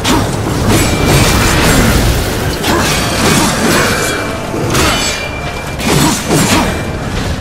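Heavy blades clash and slash in a fierce fight.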